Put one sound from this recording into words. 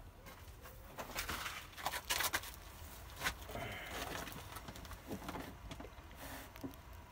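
A plastic plant tray rattles and scrapes as it is handled.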